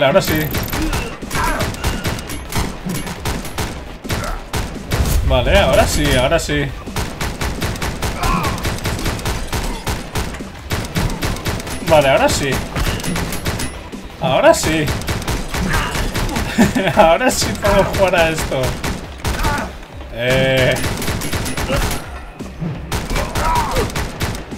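Gunshots crack rapidly in quick bursts.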